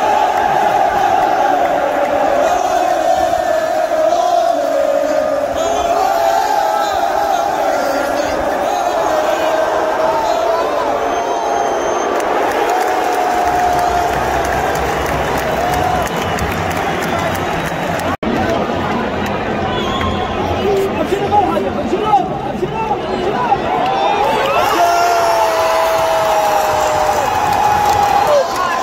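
A large crowd chants and sings loudly in a huge, open stadium.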